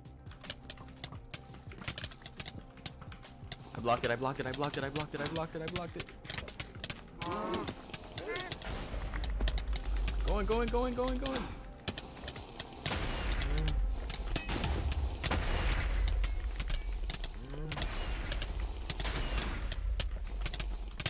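Rapid sword hits thud and click in a game fight.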